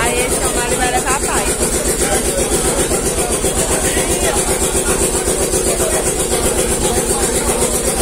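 A motor-driven mill rumbles steadily.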